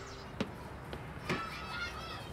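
A rubber ball bounces on hard ground.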